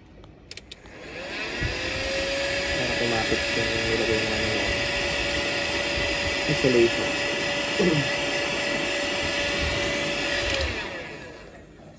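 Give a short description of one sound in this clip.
A heat gun blows with a steady whirring roar.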